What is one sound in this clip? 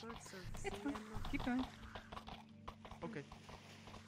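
A horse's hooves clop on stone.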